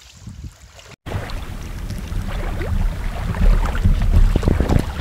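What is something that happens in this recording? Small waves wash onto a pebbly shore.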